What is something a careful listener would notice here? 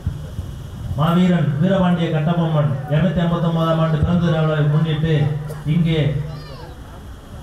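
A man speaks loudly and forcefully into a microphone over loudspeakers, outdoors.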